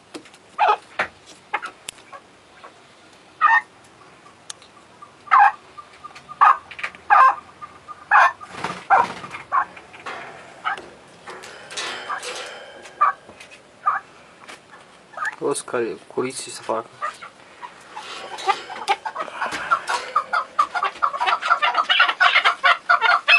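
A chukar partridge calls with sharp chirps and clucks.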